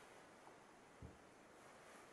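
A ceramic teapot is set down on a cloth-covered table.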